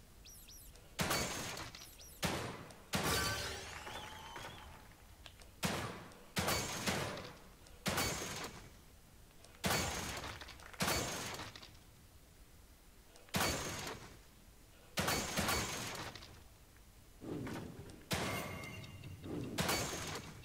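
Loud gunshots ring out one at a time, each with a long echoing tail.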